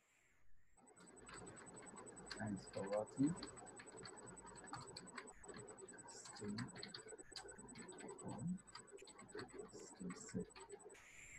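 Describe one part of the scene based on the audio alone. A keyboard clicks with quick typing.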